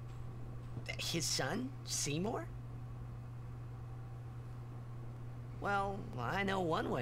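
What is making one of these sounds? A young man speaks with surprise.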